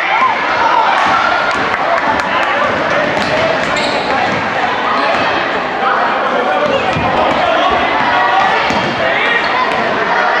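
A crowd of spectators talks and cheers nearby in an echoing gym.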